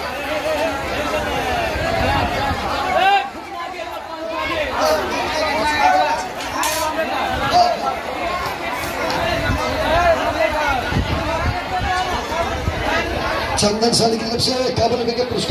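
A crowd of men talks and murmurs loudly outdoors.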